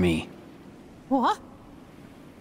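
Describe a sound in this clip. A high voice asks a short, puzzled question.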